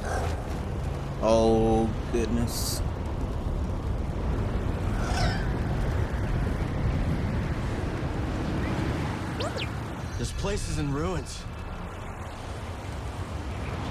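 Wind rushes steadily past.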